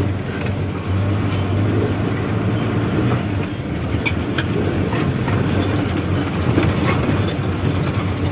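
A vehicle's cab rattles and clatters over a rough dirt road.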